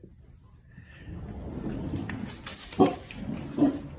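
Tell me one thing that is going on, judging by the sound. A door slides open.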